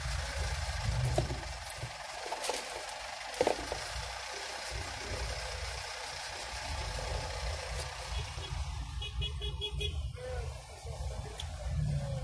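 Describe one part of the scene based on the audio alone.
A car engine hums low and steady from inside a slow-moving car.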